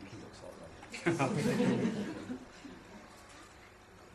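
A woman laughs close by.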